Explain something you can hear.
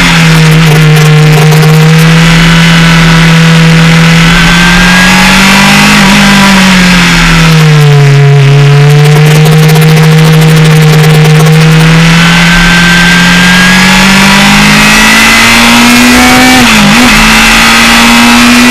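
A racing car engine roars loudly close by, its pitch rising and falling as the car speeds up and slows down.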